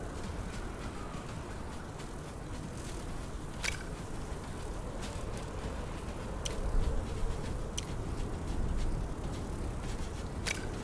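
A fire crackles and roars steadily.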